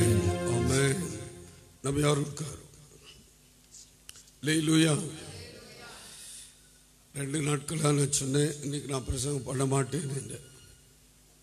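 A man speaks into a microphone over loudspeakers in a large echoing hall.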